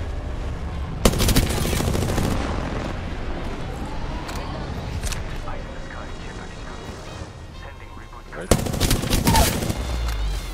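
A gun fires in rapid bursts at close range.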